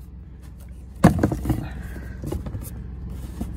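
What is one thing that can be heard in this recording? A hand rubs and taps against a leather boot close by.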